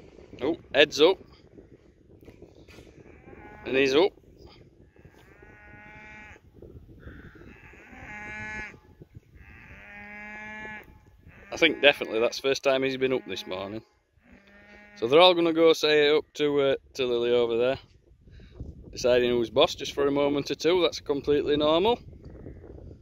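Cows moo loudly, one after another.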